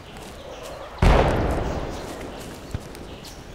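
A rifle shot cracks and echoes away across open hills.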